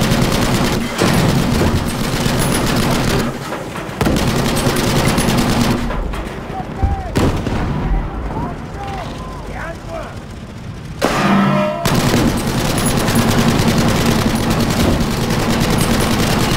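An armoured vehicle's engine rumbles and clanks loudly.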